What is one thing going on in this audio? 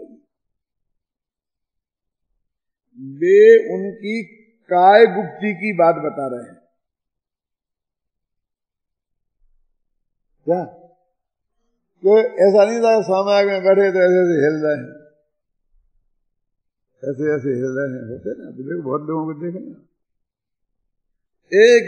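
An elderly man speaks calmly into a microphone, with pauses between phrases.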